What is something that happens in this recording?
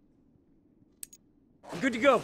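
Short electronic clicks sound as a game menu is browsed.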